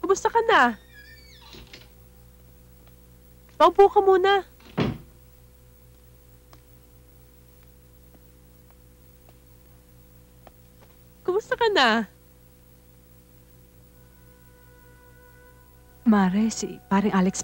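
A second young woman answers in a soft voice.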